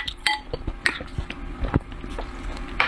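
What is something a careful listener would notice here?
A spoon clinks against a glass bowl.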